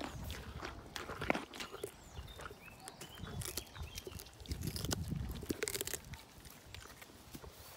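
A pony crunches a carrot close by.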